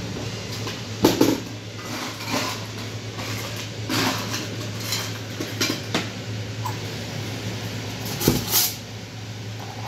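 Cups and metal taps knock and clatter.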